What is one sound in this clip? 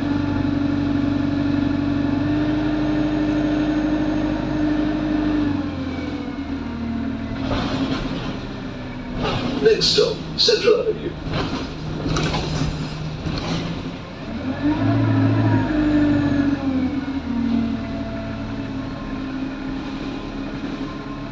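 A bus engine hums and drones steadily.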